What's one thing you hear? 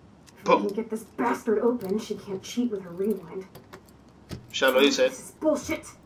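A door handle rattles.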